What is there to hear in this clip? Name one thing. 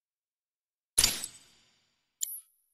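A deep whoosh and chime sound once as a menu opens.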